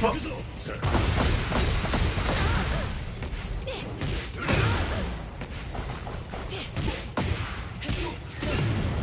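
Heavy punches and kicks land with loud impacts.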